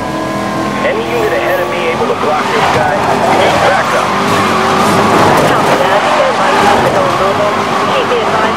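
Tyres screech as a car skids and drifts.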